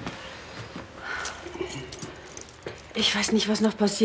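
Keys jingle softly.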